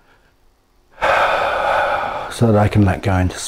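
A man breathes out slowly and audibly.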